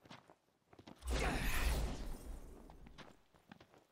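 A sudden magical whoosh rushes past and fades.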